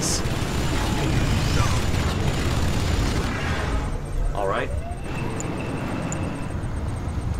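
Battle rumbles with low, continuous explosions.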